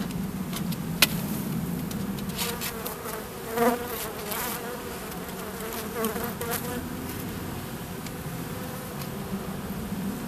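A wooden frame knocks and scrapes against a hive box.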